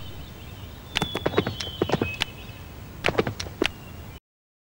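Hooves clop softly on grass.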